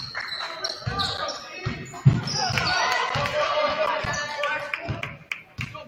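A basketball bounces on a hard court with echoing thuds.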